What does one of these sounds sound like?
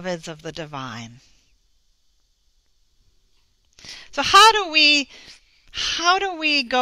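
A middle-aged woman speaks expressively into a headset microphone, pausing briefly between phrases.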